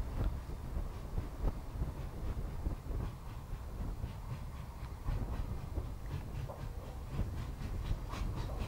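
A steam locomotive chuffs loudly in heavy rhythmic blasts as it works hard nearby.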